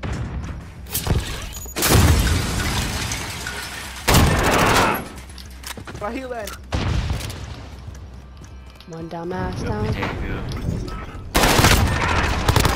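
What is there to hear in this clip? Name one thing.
A rifle fires in loud, rapid bursts.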